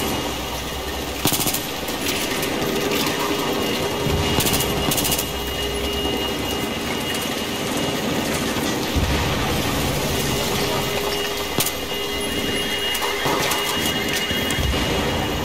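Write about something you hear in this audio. Rain patters steadily throughout.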